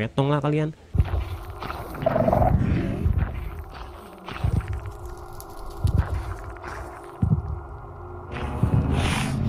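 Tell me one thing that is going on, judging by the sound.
A large creature stomps with deep, heavy thuds.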